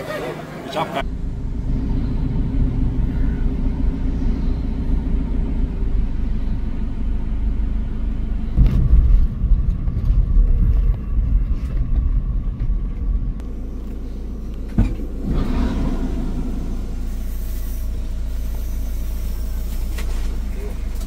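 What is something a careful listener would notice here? A vehicle engine rumbles steadily from inside.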